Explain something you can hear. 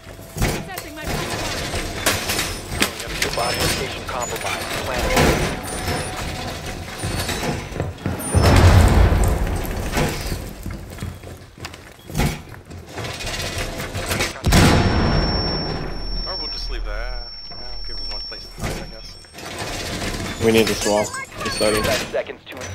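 Heavy metal panels clank and slam into place against a wall.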